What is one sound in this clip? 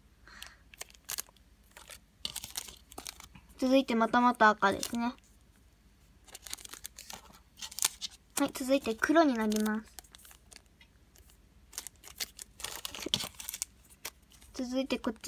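Plastic packaging crinkles and rustles as it is handled close by.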